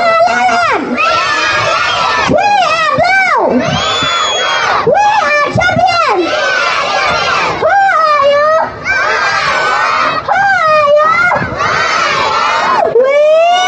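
A group of young children sing together loudly outdoors.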